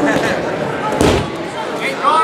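A body thumps onto a mat.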